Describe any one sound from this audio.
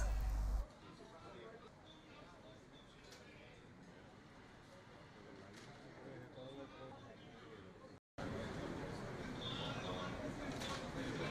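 A crowd of men chatters in a large hall.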